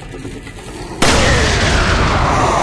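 An explosion bursts with a loud, roaring blast that slowly dies away.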